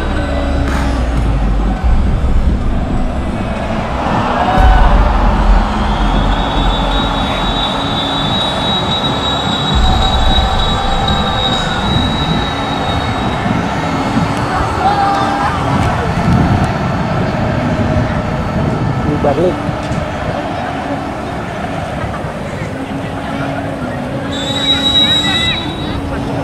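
Outdoors, a crowd of young men shout and call out across a field.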